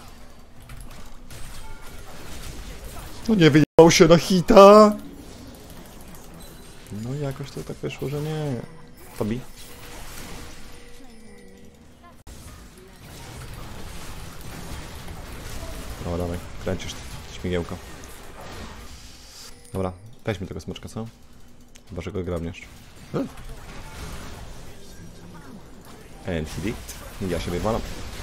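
Game spells and hits whoosh and crackle throughout.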